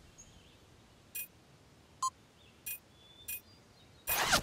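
Short electronic blips sound one after another.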